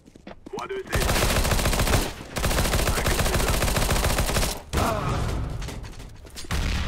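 A rifle fires in loud, rapid bursts.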